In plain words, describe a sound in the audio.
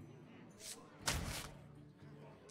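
A short whooshing game sound plays as a card is swapped.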